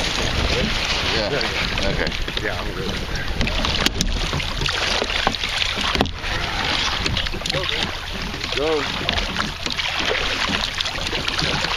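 A paddle splashes through water.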